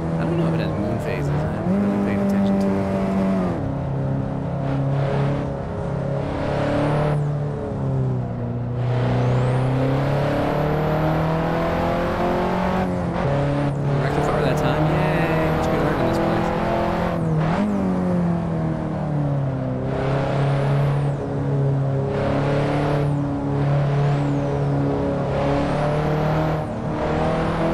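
A car engine hums and revs steadily, rising and falling in pitch through gear changes.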